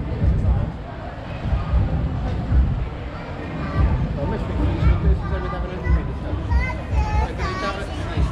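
Footsteps thump steadily on paving stones close by.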